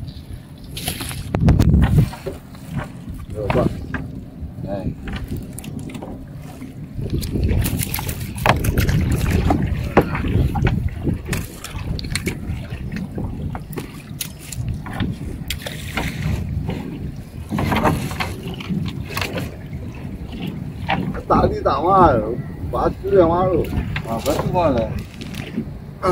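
Traps knock and rattle against a boat.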